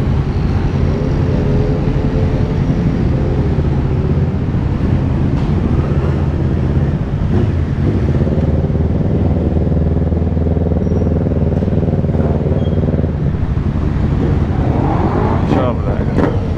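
Other motorcycles rev and ride past nearby.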